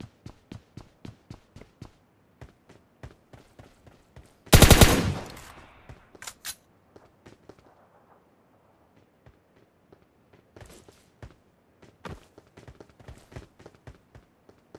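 Footsteps run quickly across a hard surface.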